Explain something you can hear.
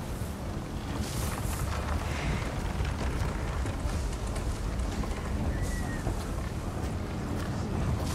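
Soft footsteps shuffle slowly over dirt and grass.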